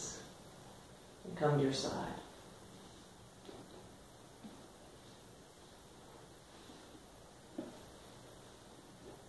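Clothing and a body rustle softly against a floor mat.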